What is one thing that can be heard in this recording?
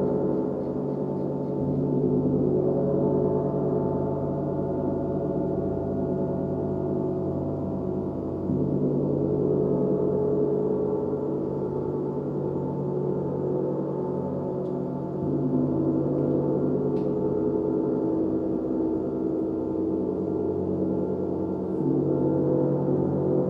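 Large gongs hum and shimmer in a long, swelling drone.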